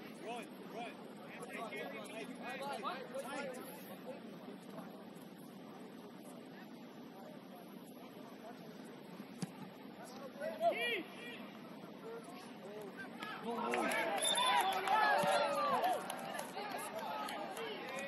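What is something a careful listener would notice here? Young players shout to each other across an open field outdoors.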